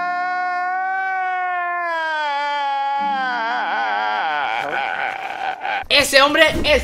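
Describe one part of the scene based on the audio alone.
A man wails and sobs loudly.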